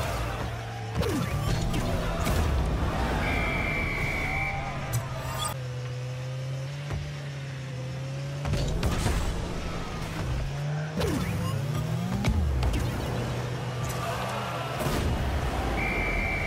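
A goal explosion bursts with a loud boom.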